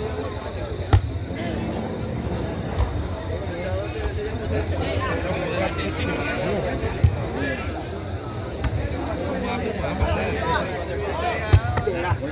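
A ball thumps as players kick it back and forth.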